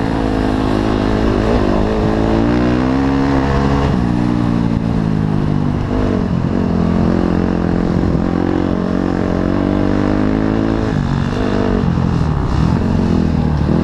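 Tyres rumble over bumpy grass.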